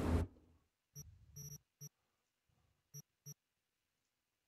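Short electronic menu clicks sound.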